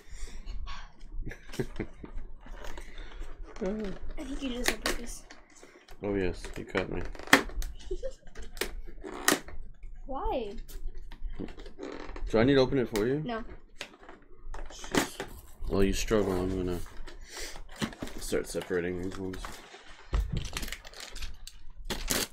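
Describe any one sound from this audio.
Cardboard packaging crinkles and rustles as it is handled.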